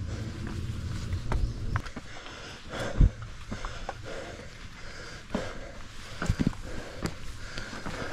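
Footsteps climb stone steps outdoors.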